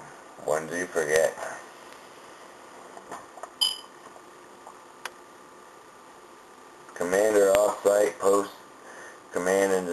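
A young man talks casually and close to the microphone, with long pauses.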